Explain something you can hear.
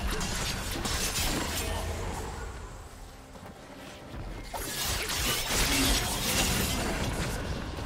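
Magic blasts whoosh and crackle in a fast-paced fight.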